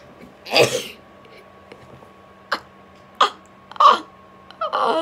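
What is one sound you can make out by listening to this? A young man laughs loudly close to a microphone.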